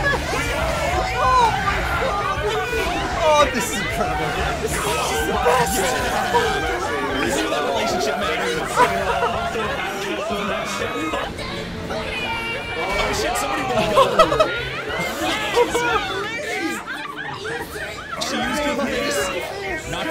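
A young woman laughs and exclaims.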